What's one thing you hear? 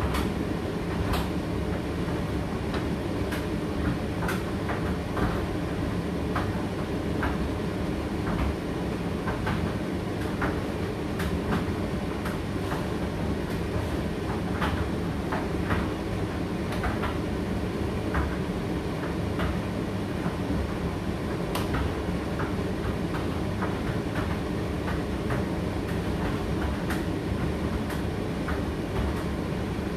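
A condenser tumble dryer hums and rumbles as its drum turns.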